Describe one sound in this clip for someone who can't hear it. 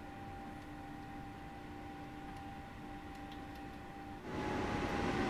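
An electric locomotive hums steadily from inside its cab.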